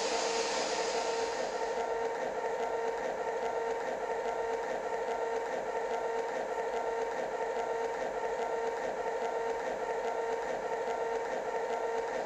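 A train engine hums steadily while idling.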